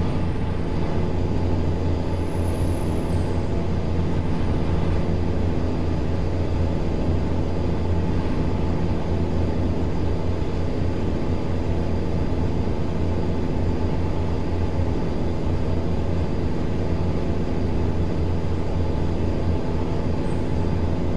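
A truck engine rumbles steadily as the truck drives along a highway.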